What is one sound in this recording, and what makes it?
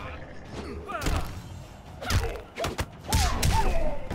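A man grunts and cries out with effort.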